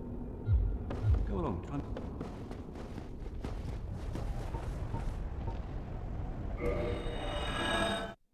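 Footsteps clank on stone.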